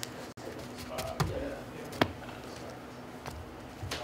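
A plastic deck box is set down on a table with a light knock.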